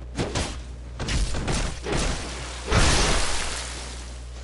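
Swords clash and strike in quick blows.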